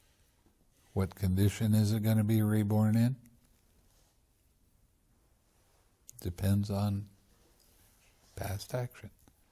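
An elderly man speaks calmly and thoughtfully, with long pauses.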